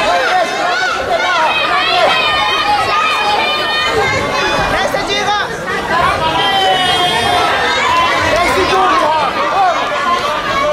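A crowd of spectators shouts and cheers loudly in a large echoing hall.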